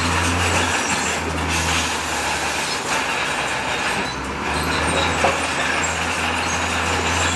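A bulldozer's diesel engine rumbles and revs as it pushes rocks.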